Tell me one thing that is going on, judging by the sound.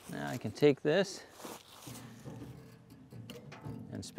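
A heavy log thumps onto dry leaves.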